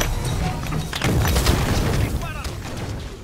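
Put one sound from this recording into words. A loud explosion booms and rumbles.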